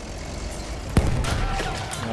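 A large explosion booms close by.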